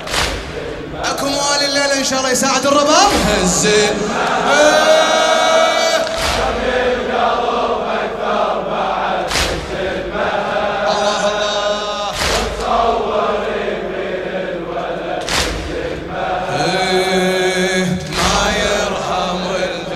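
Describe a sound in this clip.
A crowd chants along together.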